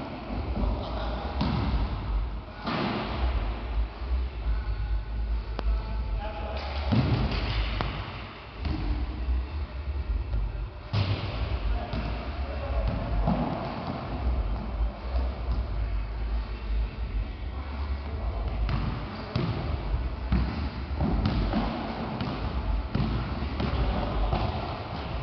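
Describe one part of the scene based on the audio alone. Sneakers squeak and thud on the wooden floor.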